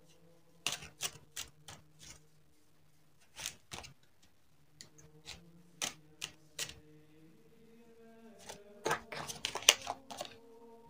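Long fingernails tap and click against a hard surface.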